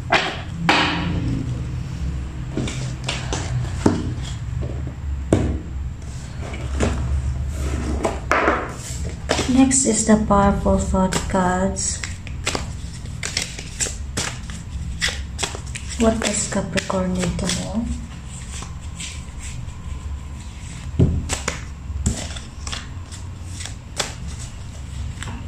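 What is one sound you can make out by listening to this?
Cards are handled and shuffled by hand.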